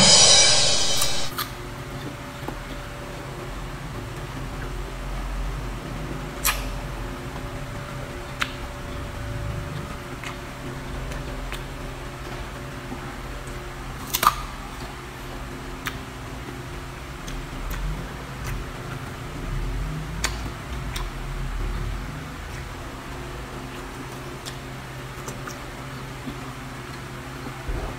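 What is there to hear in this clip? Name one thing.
An elderly woman chews food noisily with smacking sounds.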